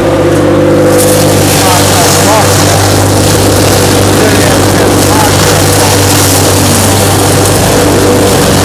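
A shredder chops straw with a loud rushing hiss.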